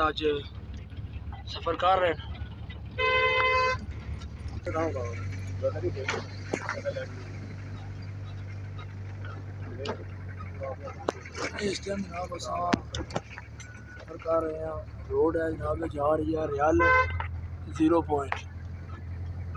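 A man talks nearby inside a car.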